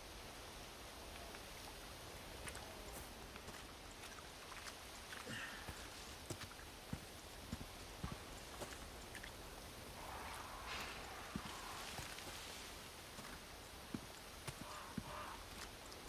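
Footsteps crunch slowly over soil and dry leaves.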